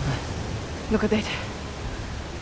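A woman asks a question with surprise.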